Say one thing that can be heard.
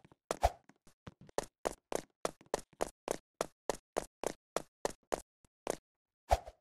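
Quick light footsteps patter along.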